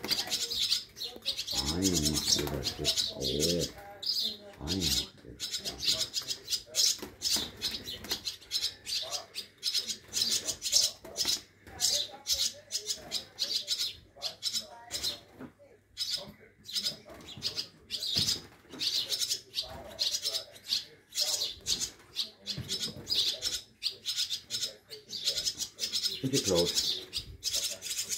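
Young birds chirp shrilly and rapidly, close by.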